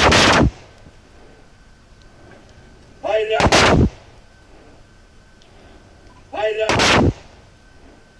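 A volley of rifle shots rings out loudly outdoors.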